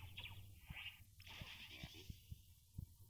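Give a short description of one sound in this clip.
A bright magical whoosh and sparkle sounds as an upgrade completes.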